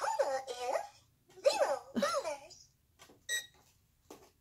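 A toy phone beeps as buttons are pressed.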